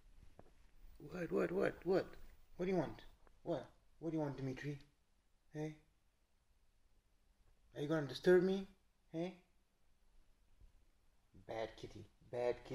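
A man speaks softly and affectionately, close by.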